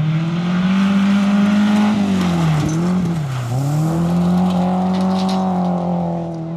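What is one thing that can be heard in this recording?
Gravel sprays and crackles under a rally car's tyres.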